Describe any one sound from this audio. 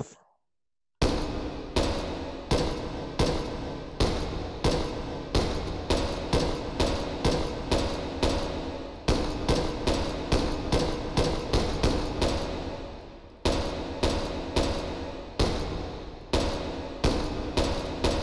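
Rifle shots ring out again and again, echoing through a large hall.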